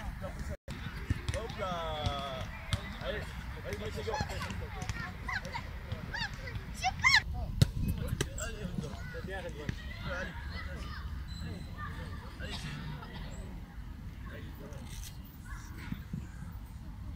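Young children shout and call out with high voices outdoors.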